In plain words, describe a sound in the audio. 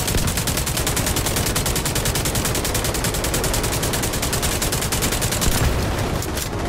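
A machine gun fires in a rapid, steady burst.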